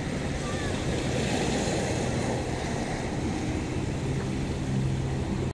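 Water sloshes gently in a bucket as a fish moves.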